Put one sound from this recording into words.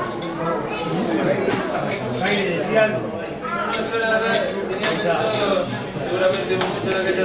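A crowd of people chatter in the background.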